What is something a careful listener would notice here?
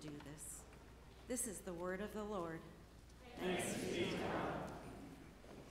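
A woman reads aloud calmly through a microphone in a large echoing hall.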